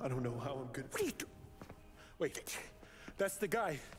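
A middle-aged man speaks sharply.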